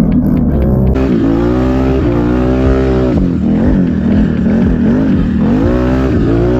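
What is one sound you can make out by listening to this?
An all-terrain vehicle engine revs up and down while riding over snow.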